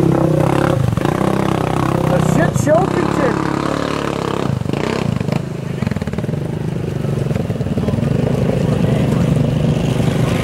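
An engine revs and rumbles loudly nearby.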